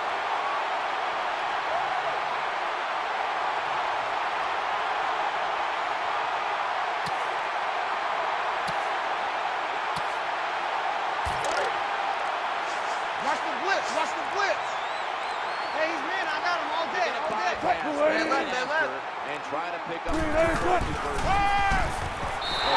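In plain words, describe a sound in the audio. A large stadium crowd roars steadily.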